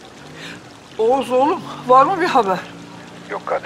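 An elderly woman speaks anxiously on a phone, close by.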